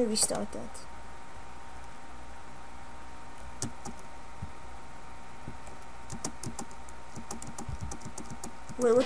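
A boy speaks briefly and close to a microphone.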